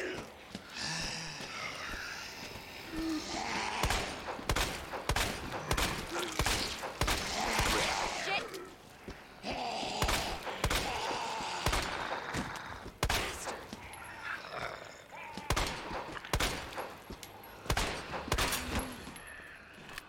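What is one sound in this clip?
Zombies groan and snarl.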